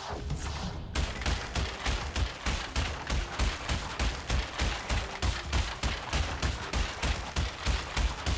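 Wooden crates rapidly crash down and smash one after another.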